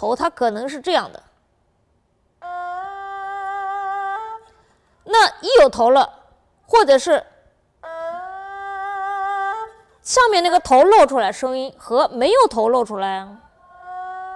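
A woman speaks calmly and explains, close to a microphone.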